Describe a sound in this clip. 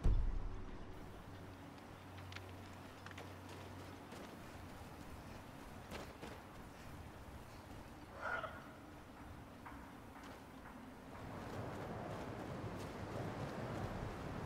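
Footsteps tread softly on dirt.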